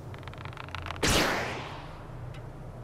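A sudden whooshing burst launches a cartoon figure into the air.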